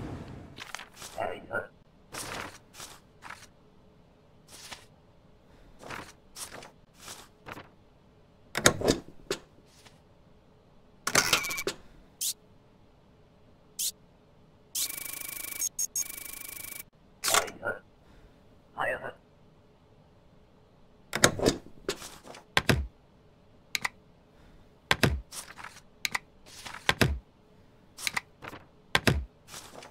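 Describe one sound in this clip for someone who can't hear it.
Paper documents shuffle and thump onto a desk.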